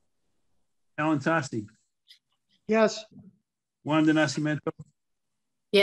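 An elderly man speaks calmly over an online call.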